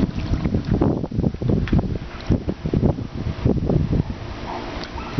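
Water splashes and sloshes in a pool.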